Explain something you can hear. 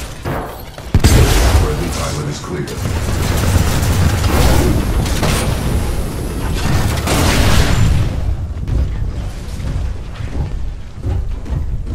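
Heavy gunfire booms in rapid bursts.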